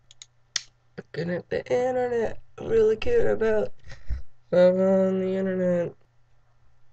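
A young woman speaks close to the microphone with animation, drawing out a long word.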